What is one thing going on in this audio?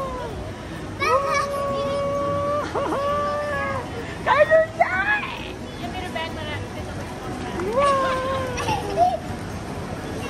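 A young woman talks in a drawn-out, sing-song voice close by.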